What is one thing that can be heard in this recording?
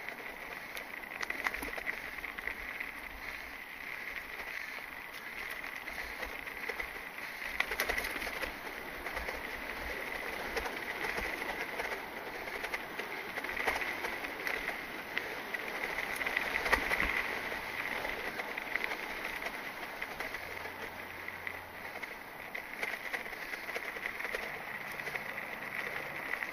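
A mountain bike rattles over bumps on the trail.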